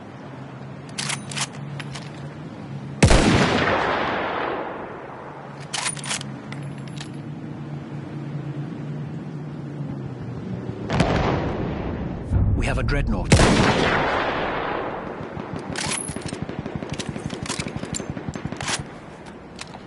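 A rifle bolt clicks and clacks as it is worked and reloaded.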